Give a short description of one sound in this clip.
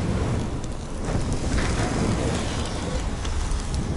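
Flames roar and crackle inside a furnace.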